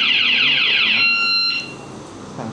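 A motorcycle alarm chirps briefly.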